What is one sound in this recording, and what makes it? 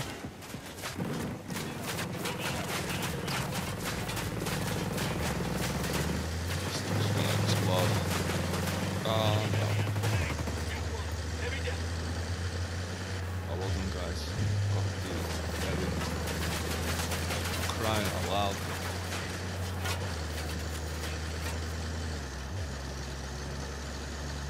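Bullets clang against a truck's metal body.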